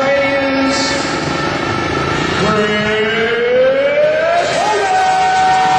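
Motorcycle engines idle and rev up, rising in pitch.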